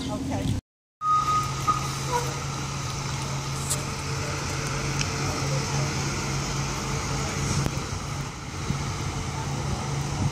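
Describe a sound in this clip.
A bus engine idles with a steady low rumble nearby.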